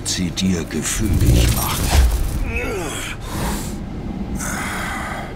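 A deep magical energy crackles and whooshes.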